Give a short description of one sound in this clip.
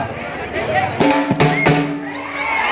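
Large drums are beaten with sticks.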